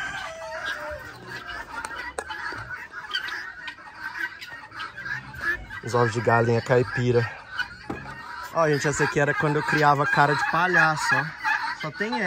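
Poultry cluck and chirp nearby.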